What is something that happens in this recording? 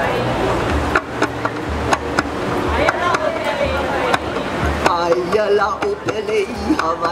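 A drum beats a steady rhythm through loudspeakers.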